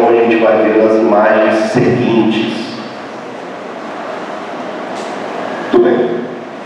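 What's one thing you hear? A man speaks into a microphone through loudspeakers in an echoing hall.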